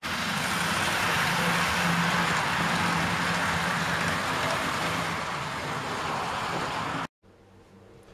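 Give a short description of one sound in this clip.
A model train rumbles along its track close by.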